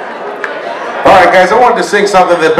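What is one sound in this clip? A second man speaks loudly into a microphone through loudspeakers.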